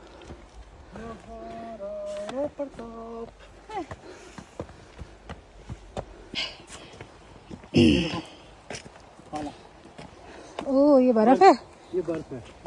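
A young woman talks playfully close by.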